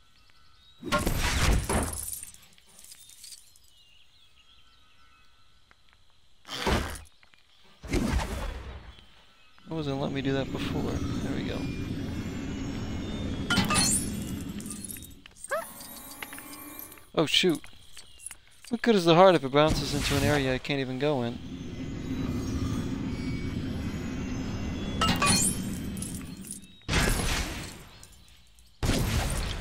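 Small bursts of game sound effects pop and chime.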